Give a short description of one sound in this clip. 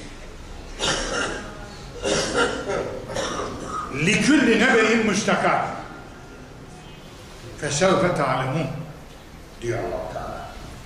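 An elderly man preaches with animation, heard close.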